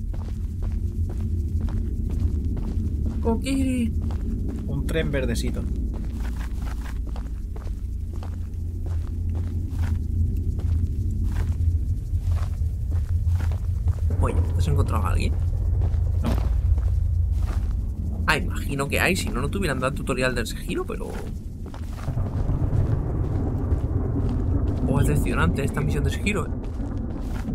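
Footsteps crunch slowly over gravel and wooden boards.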